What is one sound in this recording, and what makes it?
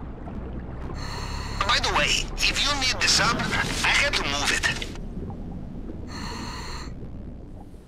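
A diver breathes through a regulator underwater, with bubbles rising.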